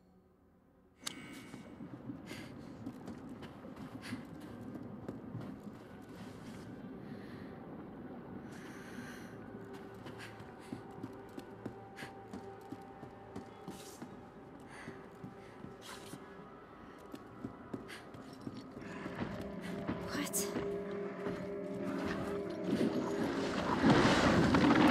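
Footsteps walk across a wooden floor.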